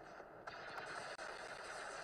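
Laser blasts fire in rapid bursts.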